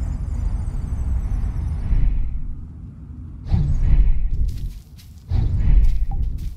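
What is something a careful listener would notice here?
A magical whoosh rushes past with a deep rumble.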